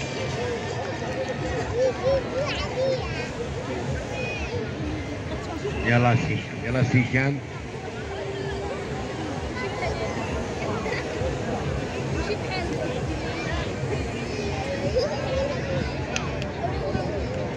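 A large outdoor crowd chatters and calls out throughout.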